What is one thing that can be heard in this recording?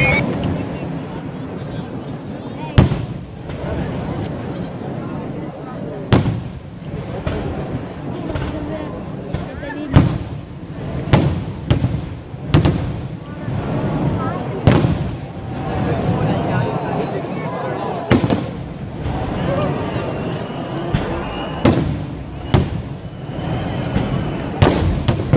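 Fireworks boom loudly in the distance.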